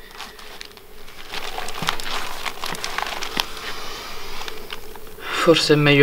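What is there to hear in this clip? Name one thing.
Newspaper pages rustle and crinkle close by.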